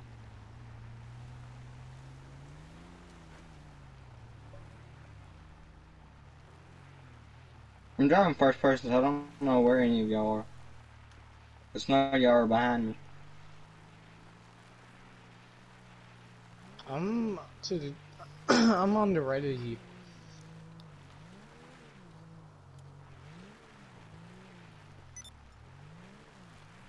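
A car engine hums steadily, rising and falling as it climbs a rough slope.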